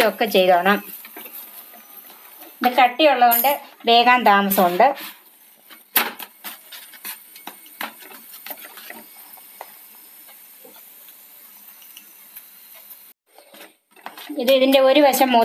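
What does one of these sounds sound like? Flatbread sizzles softly on a hot pan.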